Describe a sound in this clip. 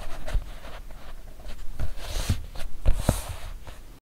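Fingers rub and tap on leather.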